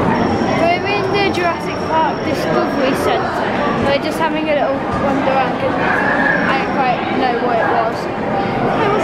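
A boy talks close by.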